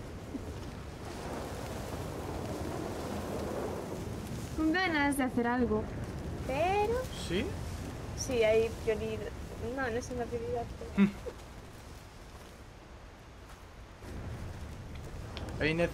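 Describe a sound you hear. Footsteps rustle through dry grass and brush.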